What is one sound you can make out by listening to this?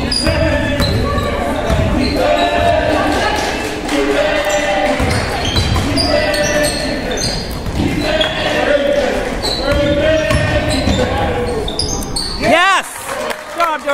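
A basketball bounces with dull thuds.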